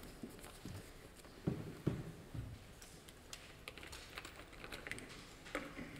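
A plastic bottle knocks and clatters on a table nearby.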